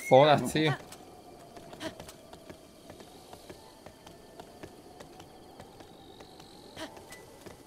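Horse hooves clop steadily on the ground.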